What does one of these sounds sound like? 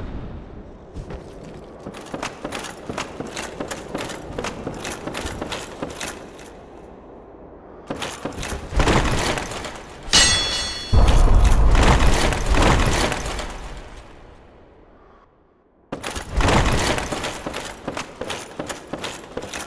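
Armoured footsteps clank on wooden planks.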